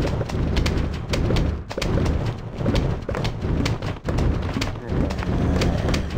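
Game plants rapidly fire peas with quick popping sounds.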